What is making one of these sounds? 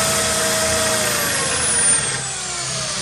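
A power drill's whine drops in pitch as it slows down.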